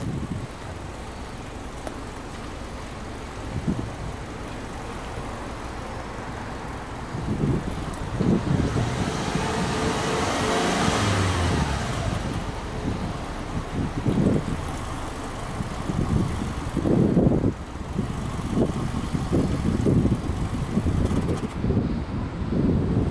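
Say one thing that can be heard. A car engine idles steadily close by.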